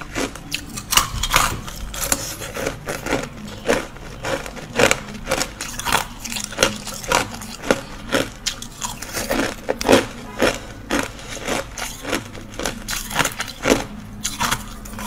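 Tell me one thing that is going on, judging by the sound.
Crunchy food crackles and crunches close up as it is chewed.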